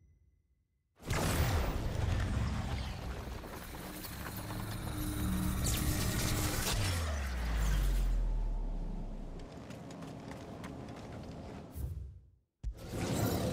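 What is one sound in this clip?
Heavy rocks rumble and grind in a roaring wind.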